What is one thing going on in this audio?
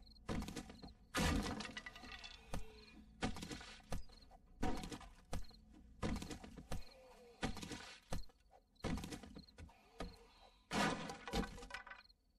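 A tool strikes wood again and again with heavy, ringing thuds.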